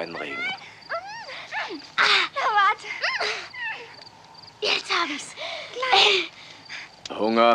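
Children shout and grunt as they wrestle.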